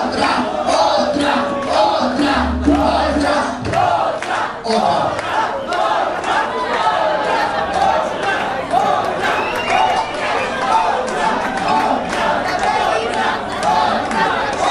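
A band plays live music loudly in a large echoing hall.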